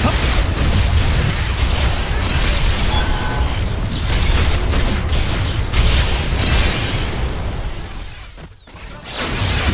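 Electronic attack effects burst and clash in a video game fight.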